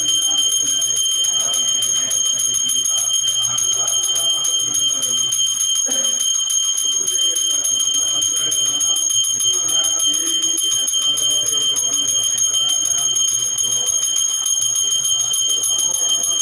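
A man chants steadily in a low voice.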